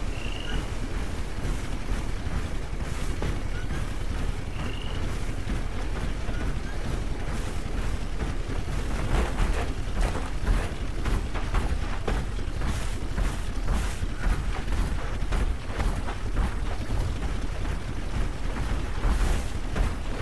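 Heavy metal footsteps of a robot clank steadily on the ground.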